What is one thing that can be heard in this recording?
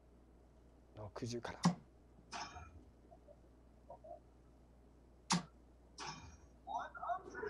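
Darts thud into an electronic dartboard.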